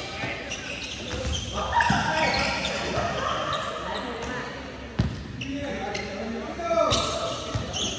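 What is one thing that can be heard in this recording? Hands strike a volleyball with sharp slaps that echo in a large hall.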